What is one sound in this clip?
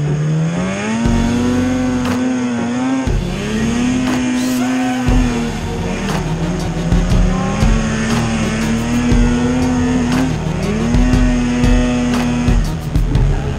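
A snowmobile engine revs loudly close by, its pitch rising and falling.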